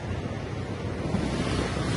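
Cloth flaps and rustles close by.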